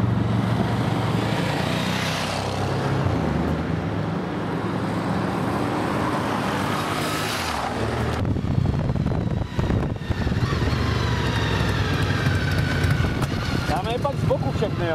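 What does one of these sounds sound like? Motorcycle engines rumble steadily nearby.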